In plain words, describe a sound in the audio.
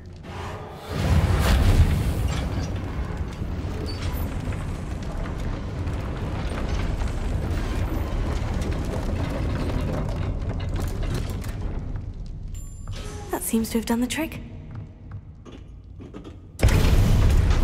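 Large wooden gears creak and rumble as they turn.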